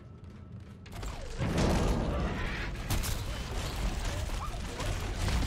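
A creature snarls and shrieks.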